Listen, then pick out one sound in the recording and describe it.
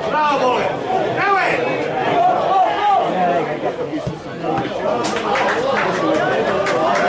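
Men among the spectators shout and call out close by, outdoors.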